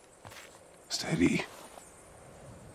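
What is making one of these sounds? A man speaks in a deep, low voice.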